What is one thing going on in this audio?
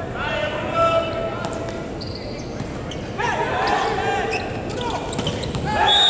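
A volleyball is struck hard, with sharp slaps echoing in a large hall.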